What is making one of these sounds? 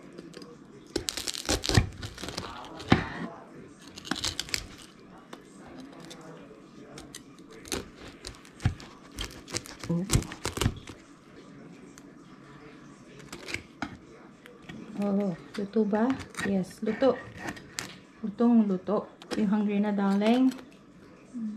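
A knife crunches and crackles through crisp pork skin.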